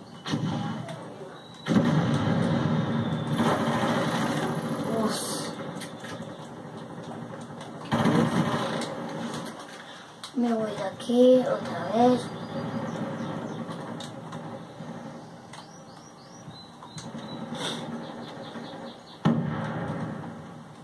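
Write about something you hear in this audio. Rapid gunfire and explosions from a video game play through a television speaker.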